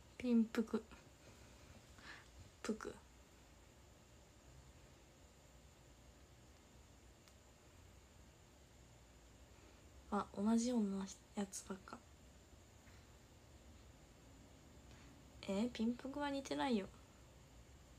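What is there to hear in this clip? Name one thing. A young woman speaks softly and briefly, close to a microphone, with long pauses.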